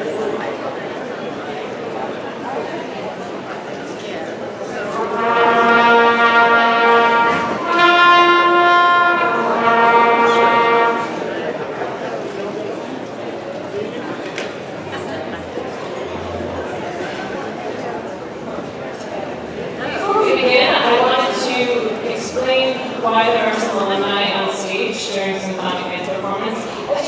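A band plays in a large echoing hall.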